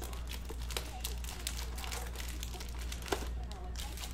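A foil pack crinkles as it is torn open.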